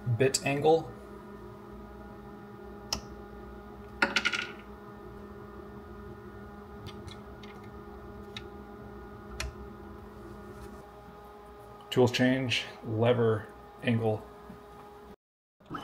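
Plastic parts click and clack as they are handled.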